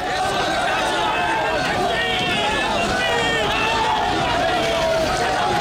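A crowd of men shout and talk over one another.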